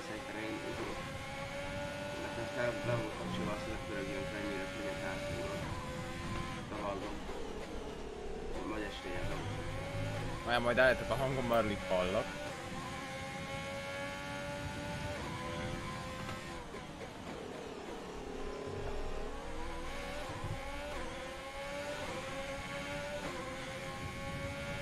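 A racing car engine screams, rising in pitch through each gear and dropping sharply when braking.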